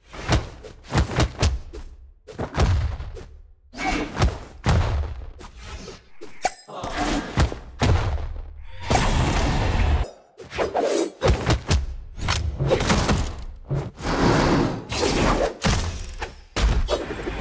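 Sharp blows and whooshes of a fast fight land again and again.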